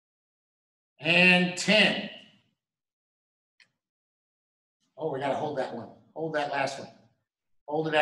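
A man speaks calmly and clearly in short phrases, close by.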